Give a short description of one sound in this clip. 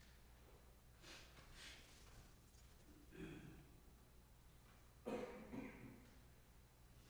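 People shift and rustle softly in their seats in a quiet room.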